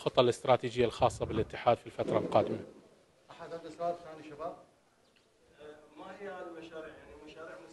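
A middle-aged man speaks calmly and steadily into close microphones.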